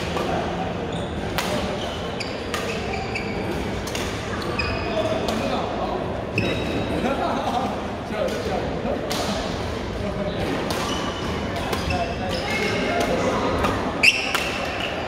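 Rackets strike shuttlecocks with sharp pops.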